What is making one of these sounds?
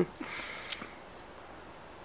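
A small child babbles softly close by.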